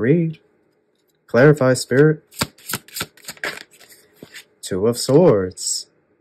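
Playing cards slide and tap softly onto a table.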